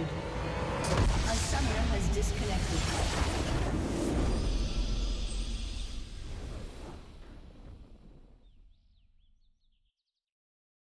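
A triumphant game fanfare swells and then fades out.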